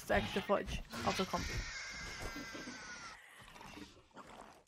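A small dinosaur lets out a shrill, screeching call.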